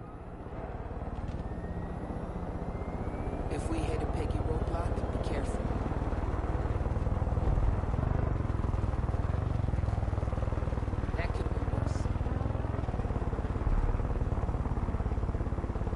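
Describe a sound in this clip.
Rotor blades thump as a helicopter flies.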